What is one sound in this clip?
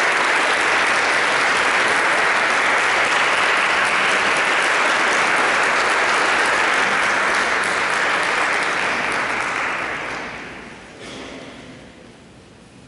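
An audience applauds loudly in a large echoing hall, then the applause fades away.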